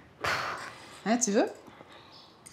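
A woman speaks softly and playfully, close by.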